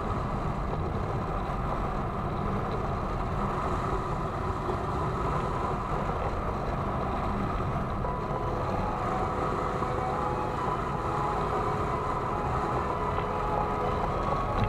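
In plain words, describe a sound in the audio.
Strong wind rushes and buffets steadily past a microphone.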